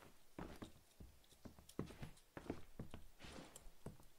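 Wooden boards knock and clatter as they are handled.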